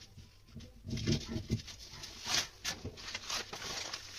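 A sheet of paper rustles as it is handled.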